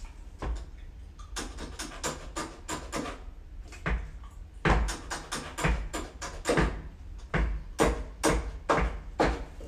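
Piano notes ring out in a quick, lively rhythm.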